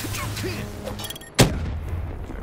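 A blade swings and strikes with a sharp hit.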